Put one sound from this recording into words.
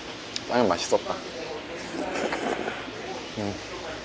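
A young man slurps noodles.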